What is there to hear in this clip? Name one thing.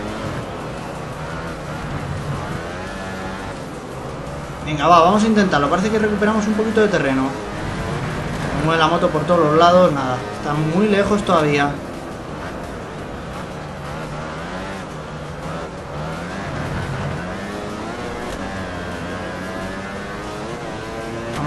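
A racing motorcycle engine whines, rising and falling in pitch as it speeds up and slows down.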